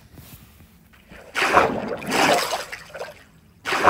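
Water bubbles and gurgles.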